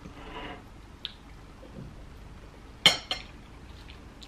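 A fork clinks against a bowl.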